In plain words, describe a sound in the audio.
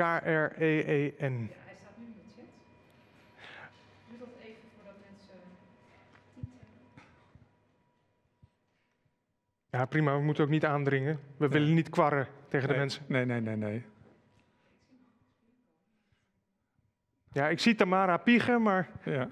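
A man speaks calmly through a microphone, in bursts with pauses.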